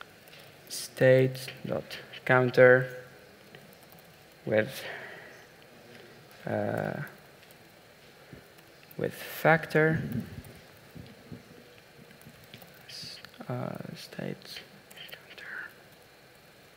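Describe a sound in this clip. A man speaks calmly through a microphone in a large hall, with pauses.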